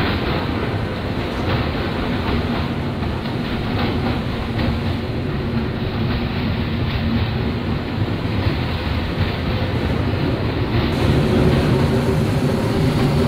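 An electric commuter train runs along the track with a steady motor hum.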